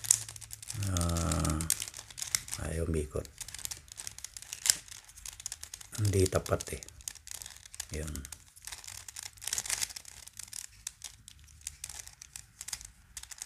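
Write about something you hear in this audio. Plastic puzzle cube pieces click and clack as they are twisted quickly.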